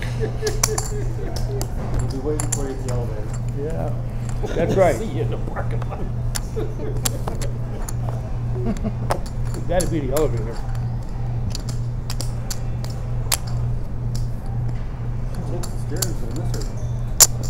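Men talk quietly around a table.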